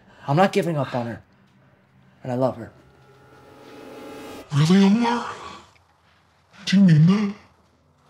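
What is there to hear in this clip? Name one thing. A young man speaks tensely in short bursts, close by.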